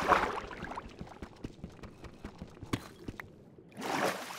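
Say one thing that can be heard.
A pickaxe chips at stone with quick, repeated taps.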